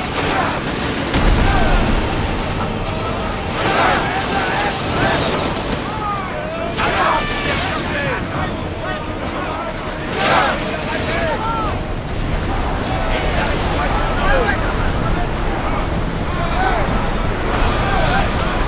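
Rough sea waves crash and churn around a wooden ship.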